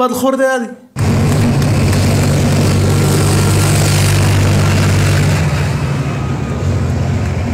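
A tank engine rumbles loudly as it drives along a road.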